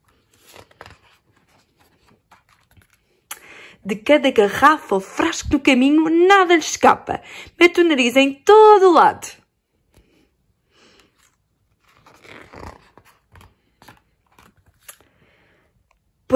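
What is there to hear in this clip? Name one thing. A paper page is turned with a soft rustle.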